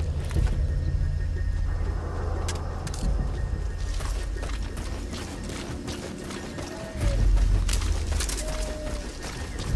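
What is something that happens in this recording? Footsteps shuffle softly over grass and dirt.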